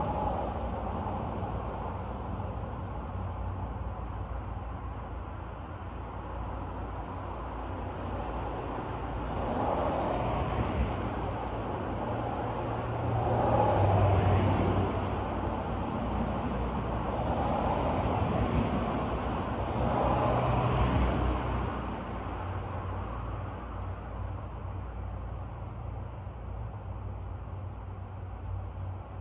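Wind rustles through tall trees and hedges outdoors, rising in gusts.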